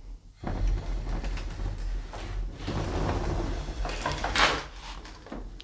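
A wooden sliding door rumbles and rattles along its track.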